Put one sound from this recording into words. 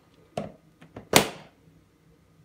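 A rice cooker lid snaps shut.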